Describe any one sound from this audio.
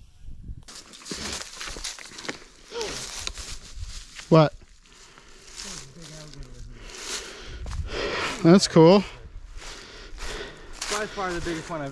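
Footsteps rustle through dry grass.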